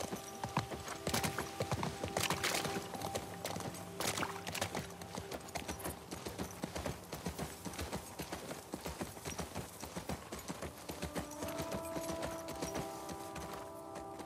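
Tall grass rustles as a horse pushes through it.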